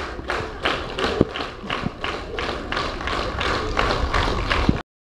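A group of young children sing together on a stage.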